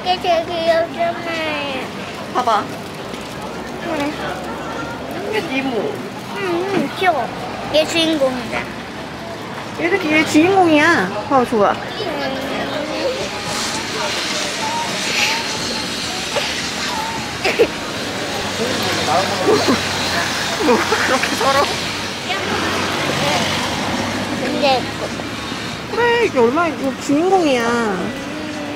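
A woman talks close by in a warm, playful voice.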